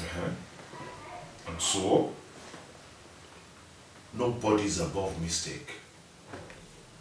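A man speaks in short, pointed phrases close by.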